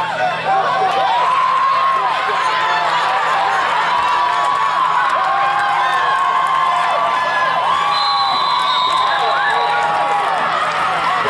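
Many children shout and cheer excitedly outdoors.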